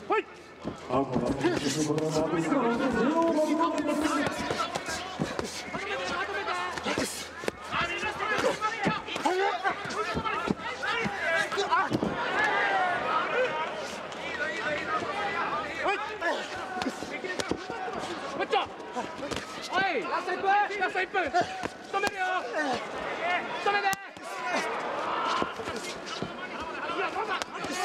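Gloved punches thud against a body.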